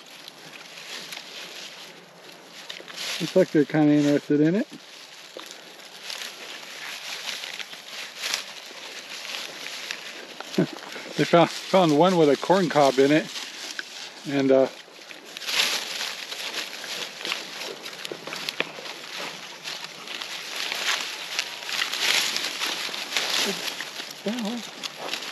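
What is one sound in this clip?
Pigs crunch and chew dry corn stalks.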